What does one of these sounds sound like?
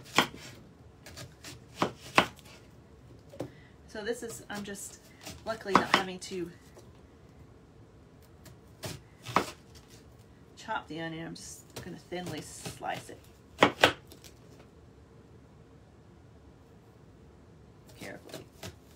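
A knife chops with sharp knocks.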